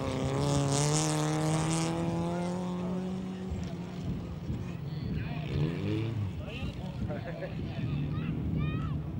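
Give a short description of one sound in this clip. A folkrace car engine roars at full throttle far off across a dirt track.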